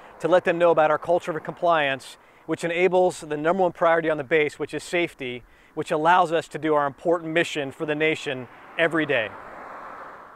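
A man talks calmly and clearly into a close microphone.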